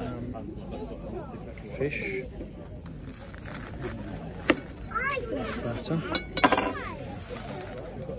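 A knife and fork scrape and clink on a plate.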